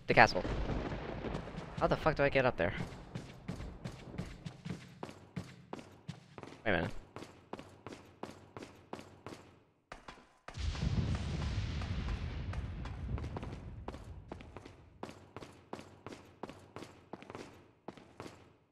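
Footsteps tread steadily on stone in an echoing space.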